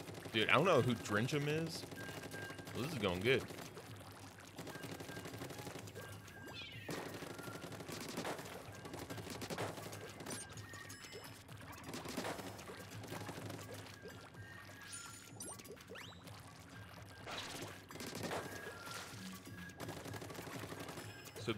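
Wet paint splashes and splatters in quick bursts.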